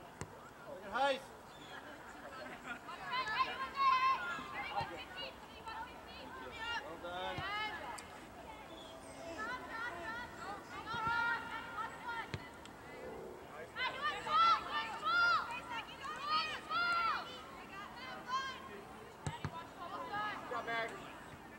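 Young female players call out to each other on the field.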